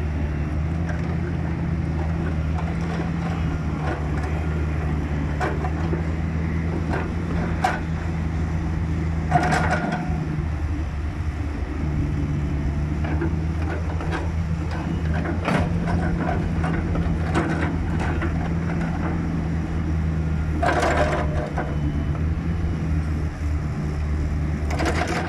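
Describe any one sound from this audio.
A diesel engine idles and hums steadily nearby.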